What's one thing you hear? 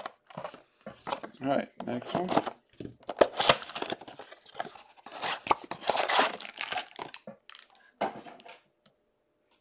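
A plastic-wrapped box rustles and crinkles as it is handled.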